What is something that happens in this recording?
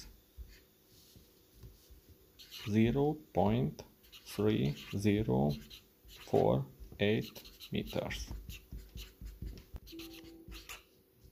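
A felt-tip marker scratches across paper.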